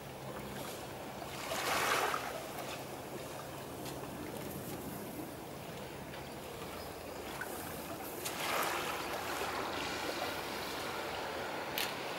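Gentle water laps quietly outdoors.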